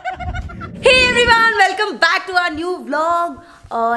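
A young woman speaks excitedly, close by.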